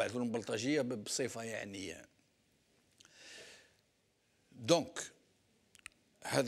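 An elderly man speaks calmly and steadily into a microphone, with pauses.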